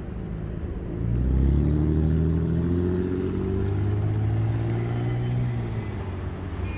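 A car engine hums as a car drives slowly past close by.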